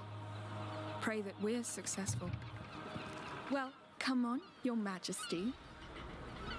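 A young woman speaks with determination.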